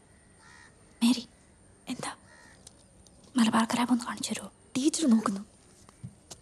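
A teenage girl speaks quietly close by.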